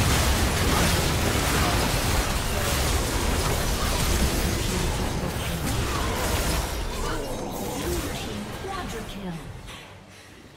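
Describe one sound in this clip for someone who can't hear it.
Game spell blasts and weapon strikes clash loudly in a busy battle, then die down.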